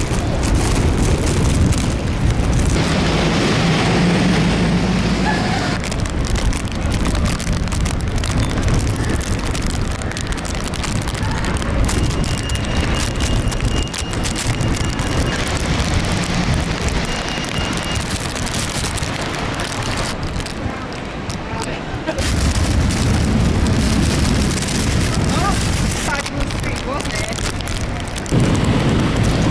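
Rain patters on wet pavement.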